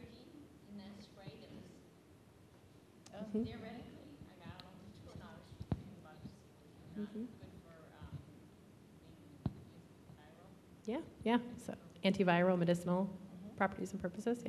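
A woman speaks calmly into a microphone, heard through loudspeakers in a large room.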